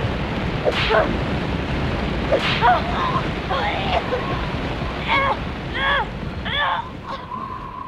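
Wind blows hard, whipping up sand.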